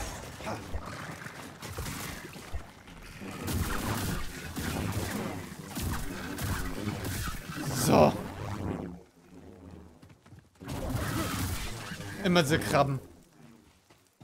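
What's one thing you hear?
A lightsaber hums and whooshes through swings.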